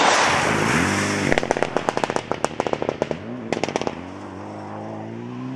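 Engines pop and crackle as the drivers lift off.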